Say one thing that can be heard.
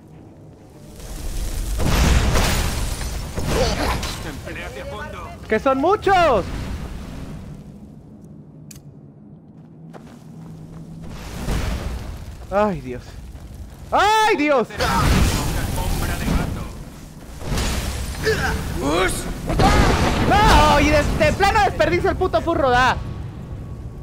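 Fire spells roar and crackle in bursts.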